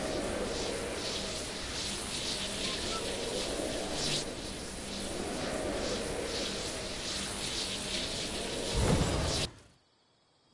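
Wind rushes loudly and steadily, then cuts off.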